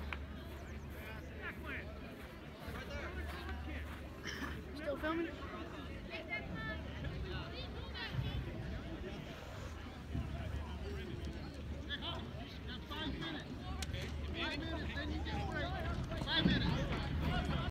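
Young women call out and chatter across an open field outdoors.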